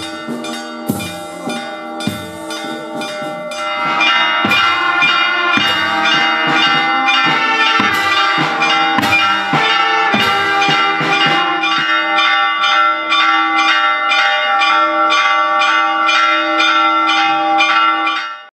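Church bells ring out loudly in rapid, repeated strokes.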